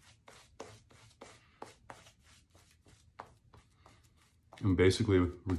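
A brush swishes and scrubs lather on stubble in quick strokes.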